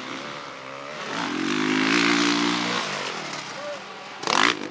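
A dirt bike engine revs loudly nearby.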